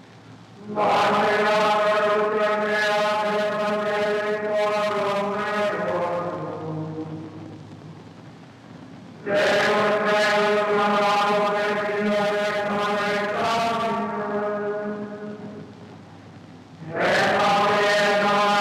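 Handbells ring out together in loud chords that slowly fade away.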